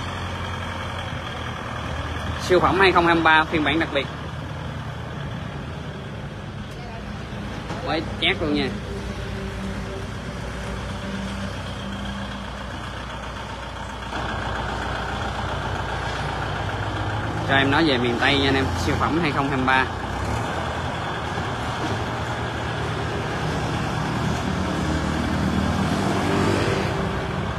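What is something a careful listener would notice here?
A tractor engine idles with a low, steady rumble and grows louder as the tractor drives up a ramp.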